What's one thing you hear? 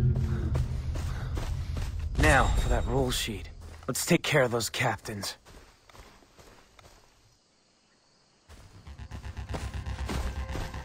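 Footsteps rustle through tall grass at a steady pace.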